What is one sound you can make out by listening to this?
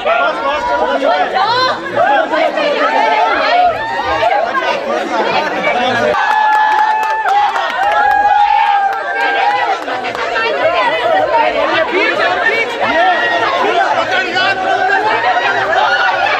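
A crowd of men and women chatter and shout excitedly close by.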